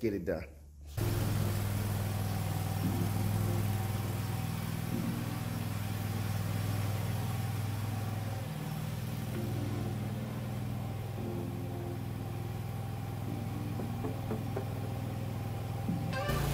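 A ride-on mower engine hums steadily nearby.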